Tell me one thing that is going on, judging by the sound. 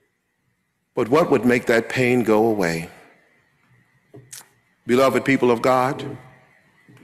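A middle-aged man speaks slowly and solemnly into a microphone.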